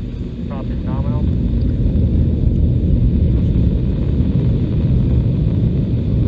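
A distant rocket roars with a deep, low rumble as it climbs.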